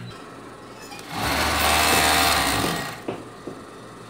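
A sewing machine whirs briefly at speed.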